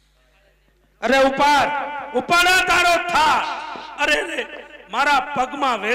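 A young man sings loudly through a microphone and loudspeaker.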